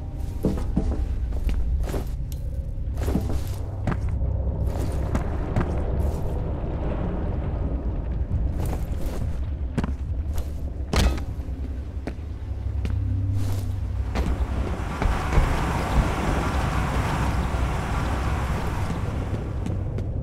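A large machine hums low and steadily.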